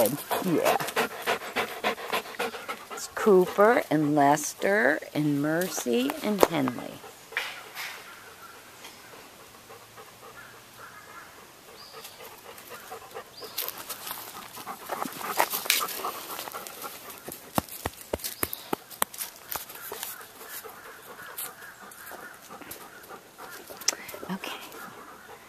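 Dogs' paws scuffle on dry leaves and dirt.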